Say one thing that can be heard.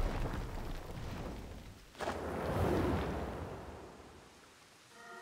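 A large bird beats its wings with a rushing gust of air.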